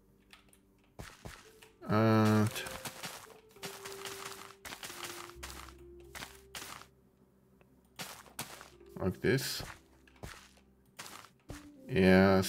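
Footsteps pad softly across grass.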